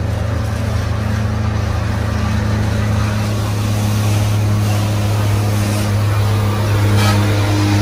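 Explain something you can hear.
A passing truck rumbles by close alongside.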